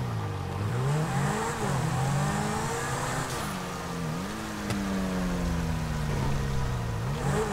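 A sports car engine revs up and down through the gears.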